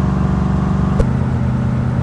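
A gear shift clunks once.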